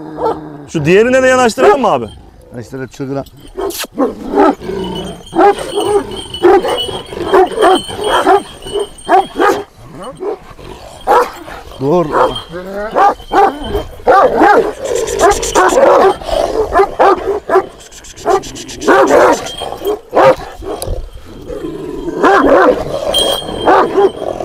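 Large dogs bark loudly and repeatedly close by.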